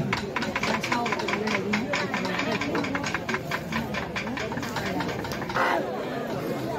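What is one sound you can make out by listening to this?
A crowd of people talks and calls out close by, outdoors.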